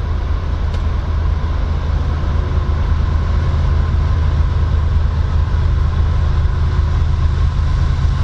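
Wind blows steadily outdoors, rumbling low.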